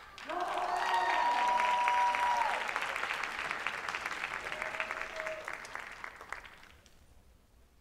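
An audience claps loudly, then the clapping fades.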